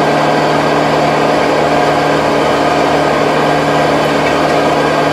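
A tractor engine runs loudly and steadily up close.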